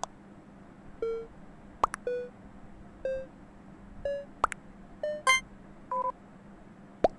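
Short electronic beeps sound again and again.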